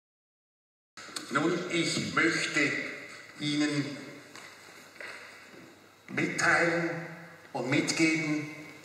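An elderly man speaks calmly through a clip-on microphone.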